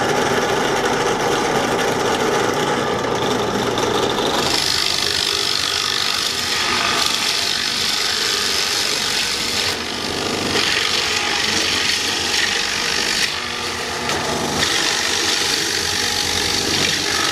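A drill press motor whirs steadily.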